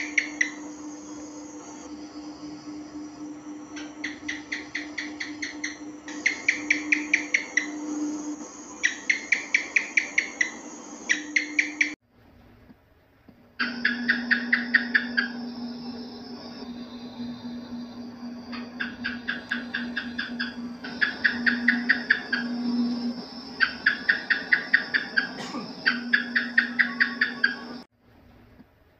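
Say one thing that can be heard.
A gecko chirps in quick bursts of clicks.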